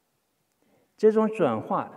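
An elderly man speaks slowly through a microphone.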